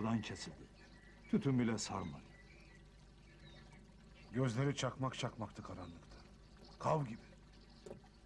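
A man speaks in short bursts nearby, with pauses between.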